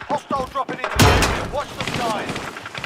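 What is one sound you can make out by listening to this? A gun clicks and rattles as it is reloaded.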